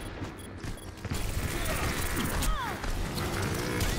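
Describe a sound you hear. Twin pistols fire in quick bursts.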